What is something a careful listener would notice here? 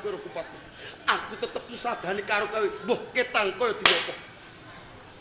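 A young man shouts with strong emotion.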